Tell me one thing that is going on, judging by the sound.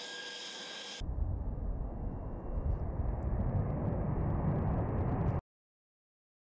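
A jet roars loudly as it takes off.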